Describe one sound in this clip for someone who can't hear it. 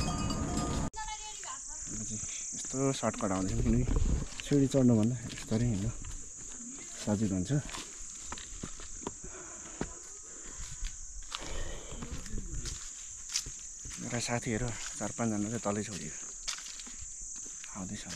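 A young man talks calmly, close by.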